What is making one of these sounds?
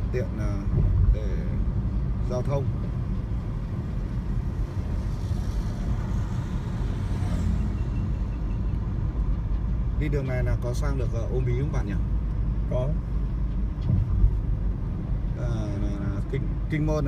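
Tyres rumble steadily on a road as a car drives along.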